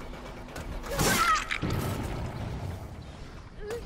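A blade slashes and strikes with a wet thud.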